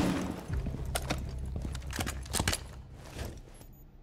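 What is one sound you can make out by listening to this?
Window glass shatters and breaks.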